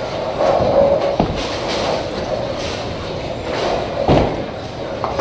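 A bowling ball rumbles down a lane.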